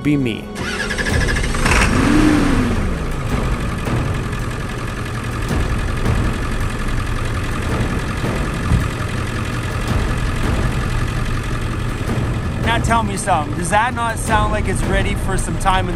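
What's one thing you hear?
A van engine idles with a steady low rumble.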